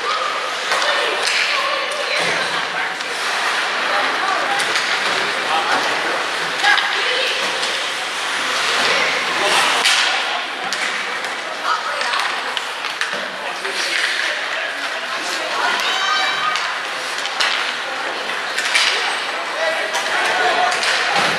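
Skates scrape and carve on ice in an echoing arena.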